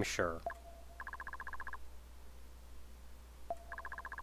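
Rapid electronic blips chirp as dialogue text types out.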